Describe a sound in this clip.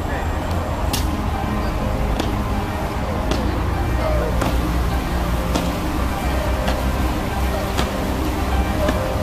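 Boots stamp in slow, even steps outdoors.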